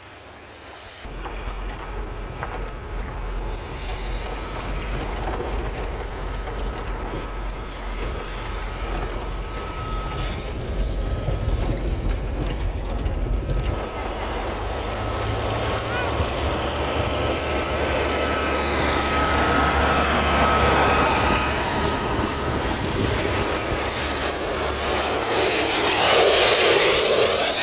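A vehicle's engine rumbles steadily while driving.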